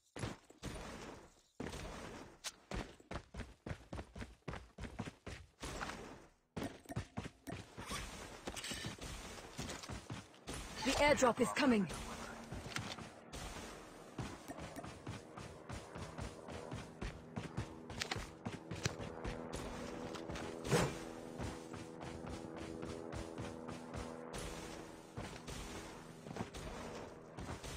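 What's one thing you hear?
Quick footsteps patter over grass and dirt.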